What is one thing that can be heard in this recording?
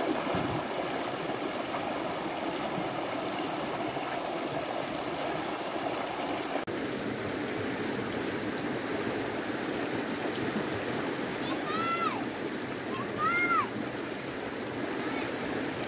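A shallow stream rushes and splashes over rocks.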